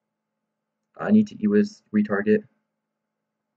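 A young man speaks briefly into a microphone, close by.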